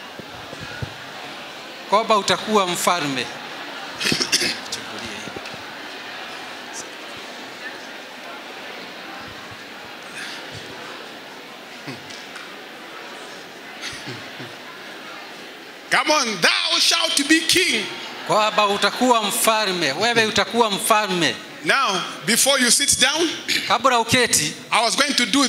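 A crowd of people murmurs and chatters in a large hall.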